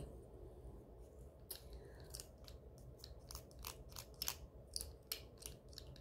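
A garlic press squeezes and crushes garlic.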